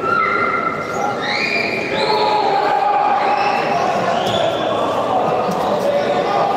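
Sports shoes squeak on a hard floor in a large echoing hall.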